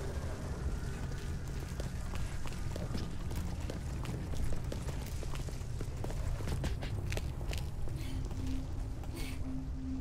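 Footsteps tap on stone paving.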